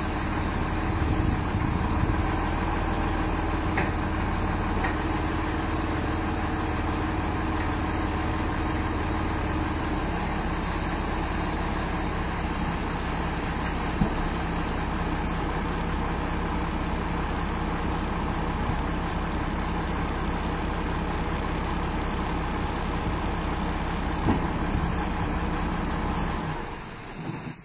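A diesel farm tractor idles.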